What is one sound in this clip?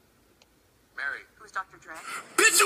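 A young woman speaks with animation through a television loudspeaker.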